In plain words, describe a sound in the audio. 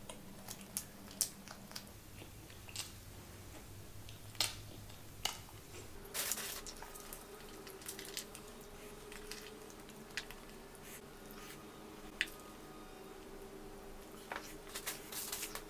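A woman chews crunchy food with wet, close-up mouth sounds.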